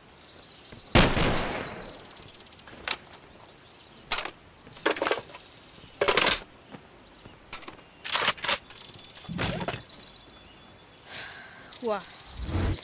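A rifle clicks and clacks as it is handled.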